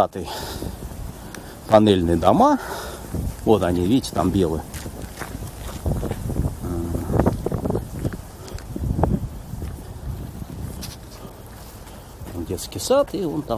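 Footsteps scuff along a paved path outdoors.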